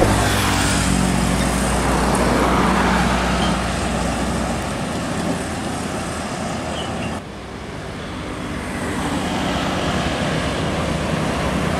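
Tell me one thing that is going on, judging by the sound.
A motorbike engine buzzes past close by.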